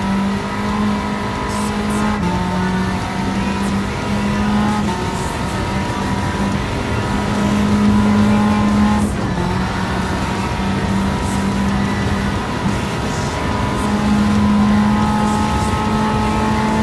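A car engine roars at high revs, dropping briefly with each gear change.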